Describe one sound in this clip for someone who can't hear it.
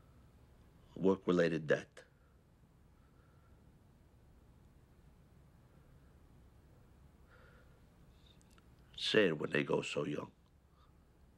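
A man speaks quietly and calmly nearby, in short bursts.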